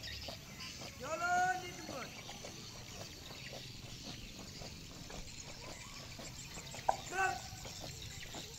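Young people's voices call out loudly outdoors.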